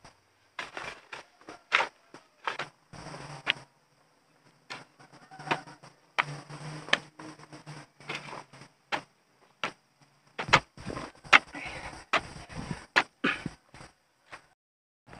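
A hoe scrapes and chops into dry soil.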